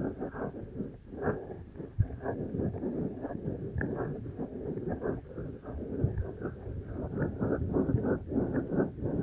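Fingers rub and scratch on a microphone's foam ear covers close up, in soft rustling bursts.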